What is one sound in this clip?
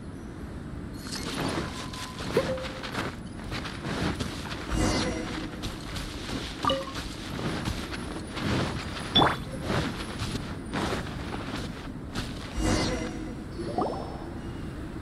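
Footsteps crunch through snow at a run.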